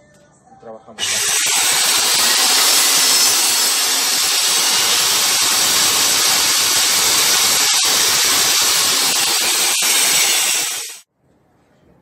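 A table saw motor runs with a loud, steady roar, then stops abruptly.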